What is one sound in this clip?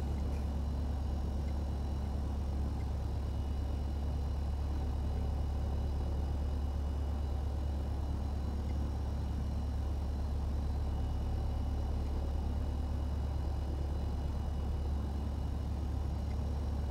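A small propeller plane's engine drones steadily at a low idle.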